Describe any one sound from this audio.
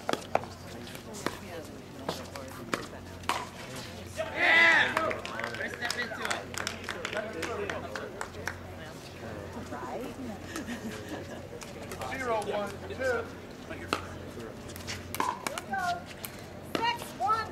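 Paddles hit a plastic ball with sharp hollow pops.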